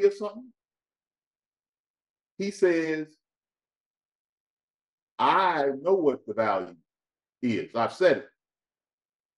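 A man speaks calmly in short phrases close to a microphone.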